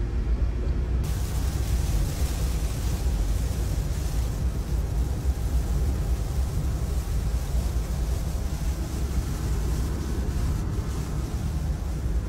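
Rain patters on a car's windshield and roof.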